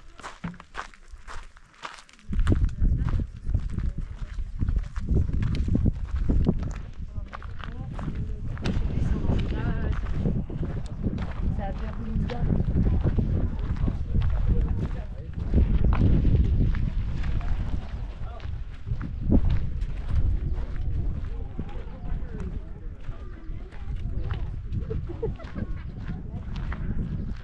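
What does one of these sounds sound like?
Footsteps crunch on gravel close by.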